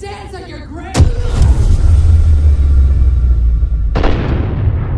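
A loud explosion bursts and rumbles away.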